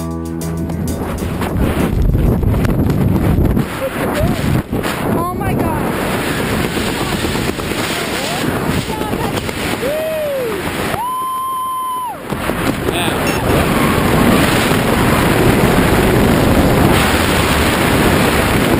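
Strong wind roars and buffets across the microphone.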